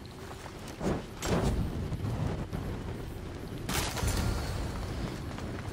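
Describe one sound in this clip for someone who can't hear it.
Fire bursts with a loud whoosh.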